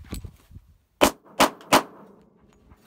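Three sharp pistol shots crack outdoors in quick succession.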